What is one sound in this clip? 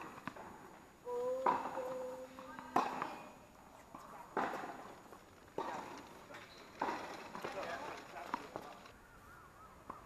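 Tennis ball hits ring out in a large echoing hall.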